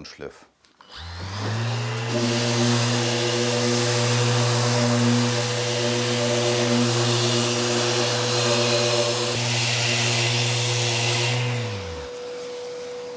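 An electric sander whirs loudly against wood.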